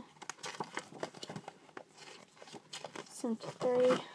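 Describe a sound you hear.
Paper pages rustle and flap as a book's pages are turned.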